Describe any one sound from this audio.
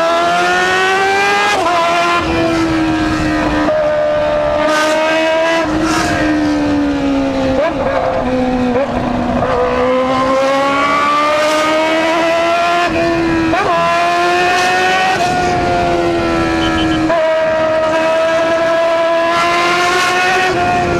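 A motorcycle engine hums up close, its pitch rising and falling as it speeds up and shifts gears.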